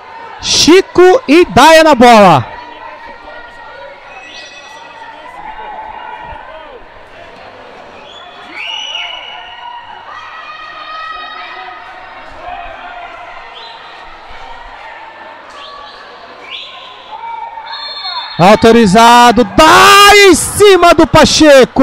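A crowd cheers and chants loudly in a large echoing hall.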